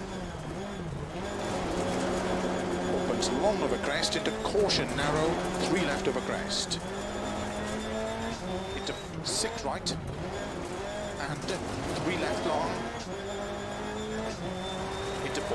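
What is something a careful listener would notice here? A rally car engine roars and changes pitch as it shifts gears.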